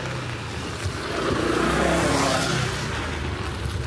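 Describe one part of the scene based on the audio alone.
A motor scooter passes close by.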